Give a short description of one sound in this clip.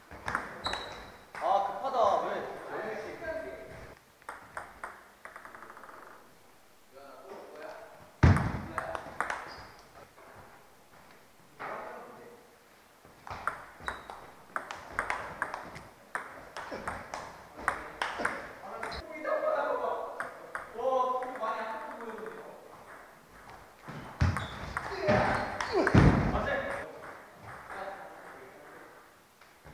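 A ping pong ball clicks back and forth off paddles and a table in a quick rally.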